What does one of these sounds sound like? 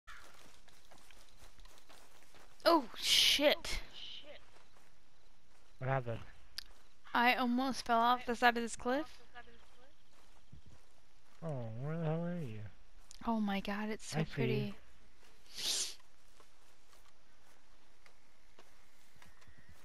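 Footsteps walk on grass and rocky ground.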